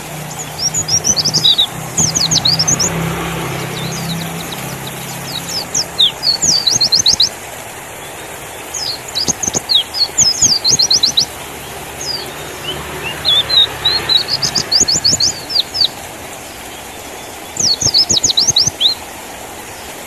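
A small bird sings bursts of quick, high chirps and trills close by.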